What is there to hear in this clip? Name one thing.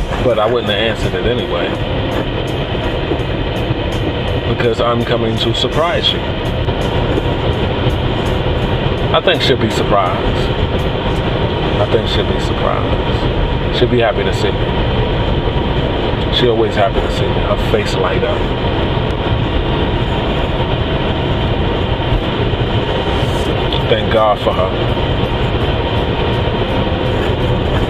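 A car engine and road noise hum steadily.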